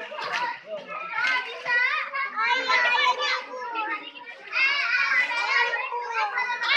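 Children shout and chatter excitedly nearby, echoing off hard walls.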